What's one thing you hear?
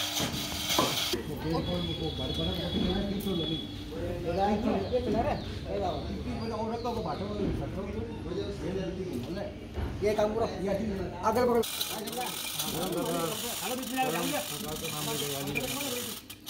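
Several men talk and call out to each other close by, outdoors.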